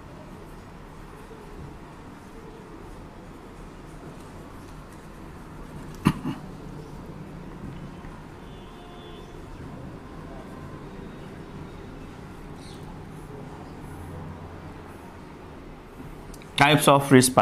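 A marker squeaks faintly as it writes on a whiteboard.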